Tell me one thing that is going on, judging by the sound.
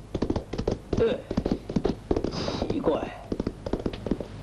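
An elderly man speaks in a puzzled voice.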